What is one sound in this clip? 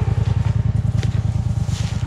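Tall grass rustles as it is pushed aside.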